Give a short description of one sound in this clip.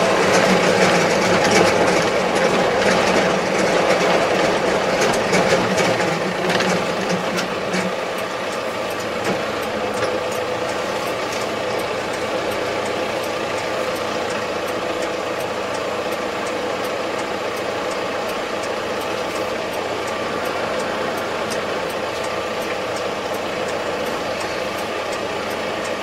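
A tractor engine drones steadily from inside the cab, a little louder at first.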